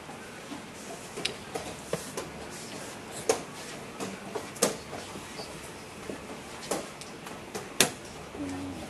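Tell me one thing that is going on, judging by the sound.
Wooden chess pieces tap and clack on a board.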